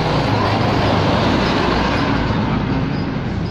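A truck engine rumbles close by and pulls away.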